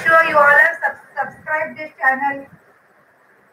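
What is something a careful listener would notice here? A woman speaks clearly and close by.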